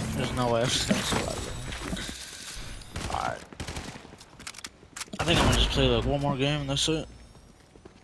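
A young man talks close to a microphone, with animation.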